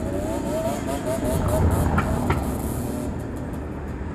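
A car drives past slowly on a street.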